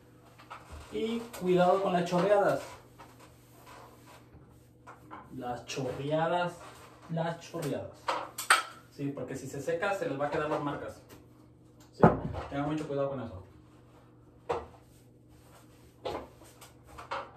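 A wet sponge wipes across tiles.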